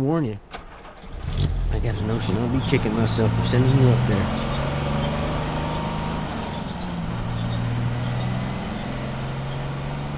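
An old truck engine starts, rumbles and pulls away.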